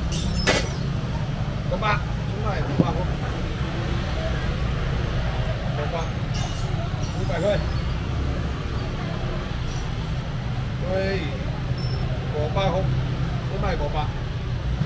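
A busy market crowd murmurs in a steady hubbub.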